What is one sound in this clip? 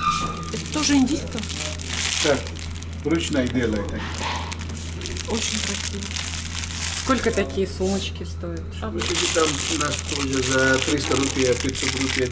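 Plastic wrapping crinkles under a hand.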